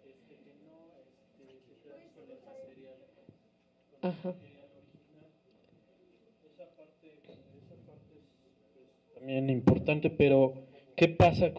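A woman speaks calmly into a microphone, heard through a loudspeaker in an echoing room.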